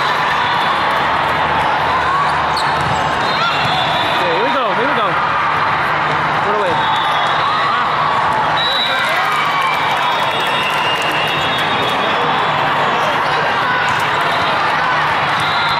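A volleyball is struck with a slap.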